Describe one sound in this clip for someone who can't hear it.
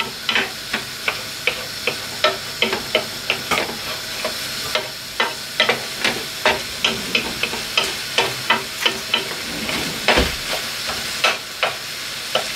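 Minced meat sizzles steadily in a hot pan.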